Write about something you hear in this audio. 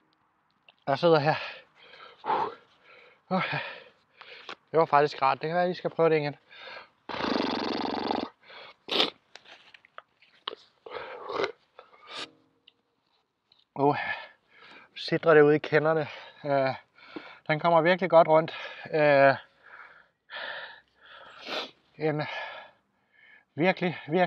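A young man talks close to a microphone, with pauses.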